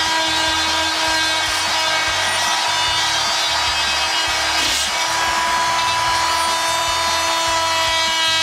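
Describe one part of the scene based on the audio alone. An oscillating power tool buzzes steadily as it cuts.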